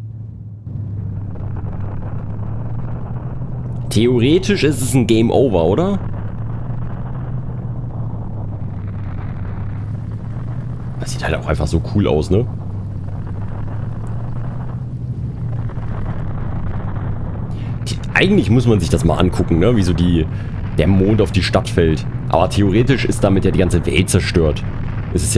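A deep rumble drones steadily.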